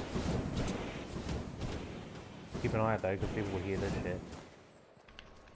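A jetpack roars with a rushing hiss.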